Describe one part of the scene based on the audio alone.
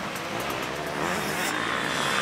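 A motorcycle engine revs up close and passes by.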